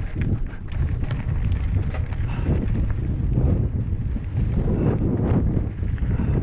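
Bike tyres crunch and rattle over a dry dirt trail.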